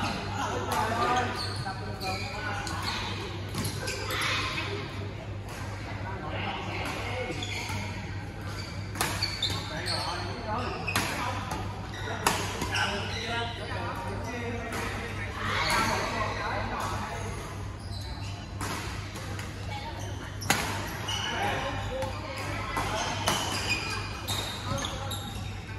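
Rackets smack shuttlecocks in quick, sharp hits across a large echoing hall.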